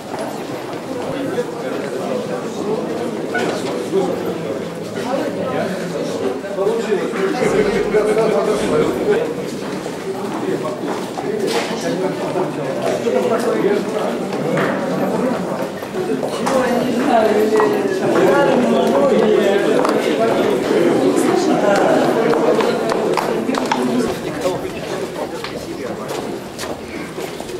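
Several men and women talk at once nearby, in a murmur of voices.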